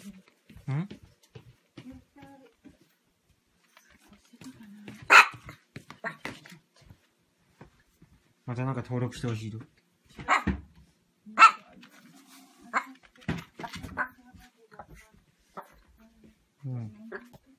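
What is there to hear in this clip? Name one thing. A small dog yaps and whines excitedly close by.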